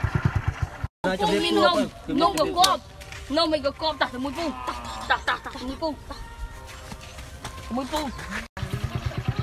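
A young child speaks in a high voice close by.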